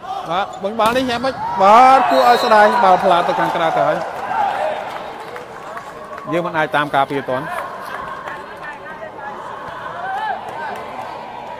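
A crowd cheers and chatters in a large echoing arena.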